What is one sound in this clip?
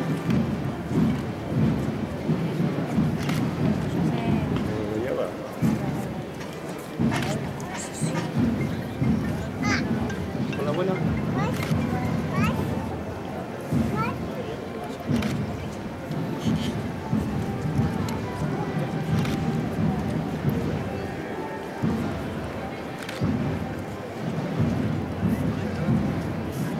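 A crowd of adults and children chatters and murmurs outdoors.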